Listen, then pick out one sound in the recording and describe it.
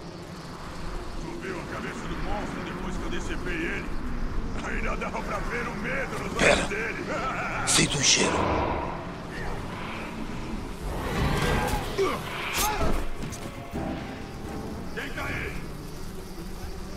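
A man talks calmly into a headset microphone.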